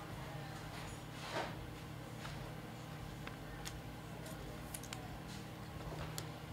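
A plastic card holder clicks and rustles as it is handled close by.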